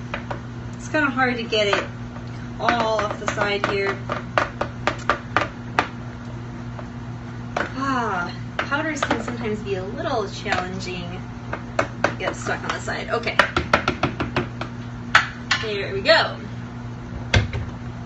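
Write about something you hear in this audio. Food is scooped and tapped against a blender jar with light knocks.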